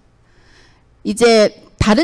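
A woman speaks loudly through a microphone.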